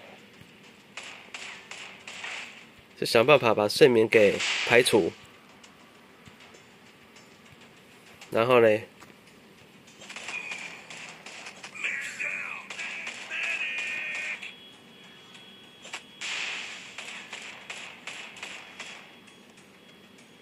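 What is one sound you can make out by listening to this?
Guns fire in quick bursts of shots.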